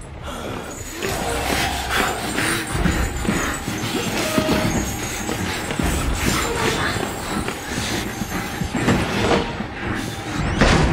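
Hurried footsteps thud on a wooden floor.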